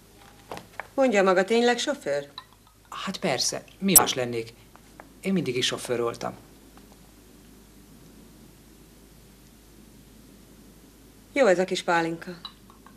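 A middle-aged woman speaks nearby.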